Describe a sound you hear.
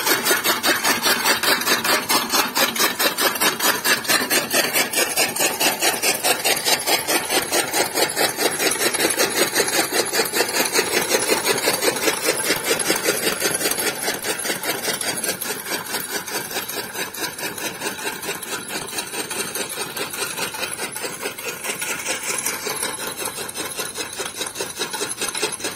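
A hand-turned chaff cutter whirs and chops fodder in a fast rhythm.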